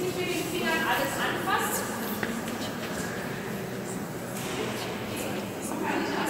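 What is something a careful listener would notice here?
Adults talk quietly in a large echoing hall.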